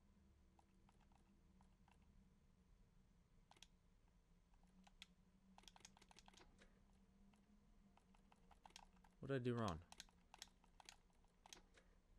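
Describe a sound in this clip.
Keypad buttons beep and click as a code is entered.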